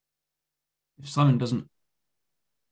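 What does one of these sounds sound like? A man speaks a few words with animation over an online call.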